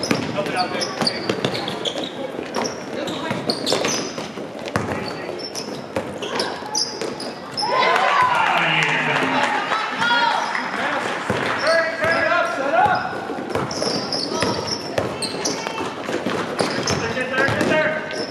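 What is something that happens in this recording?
Players and spectators shout and call out in a large echoing hall.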